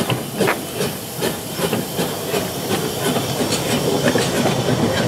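A steam locomotive chuffs rhythmically close by.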